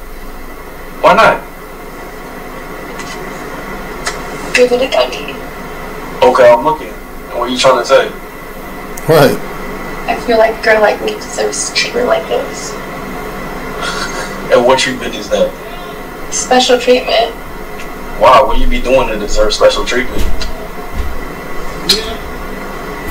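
A man talks, heard through a loudspeaker.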